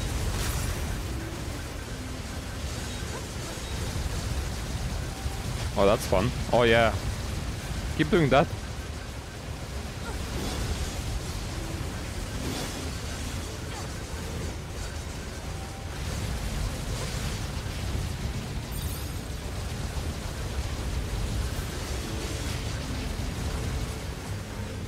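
Video game battle noises rumble and clash throughout.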